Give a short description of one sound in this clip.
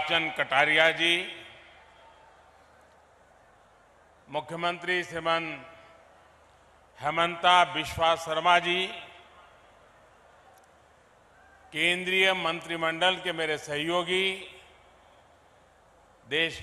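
An elderly man gives a speech through a microphone and loudspeakers, in short bursts with pauses, in a large echoing space.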